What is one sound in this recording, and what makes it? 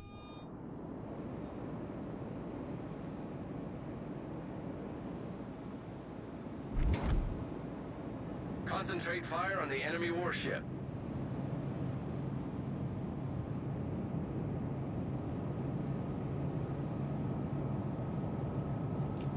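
Water rushes and splashes along a warship's hull.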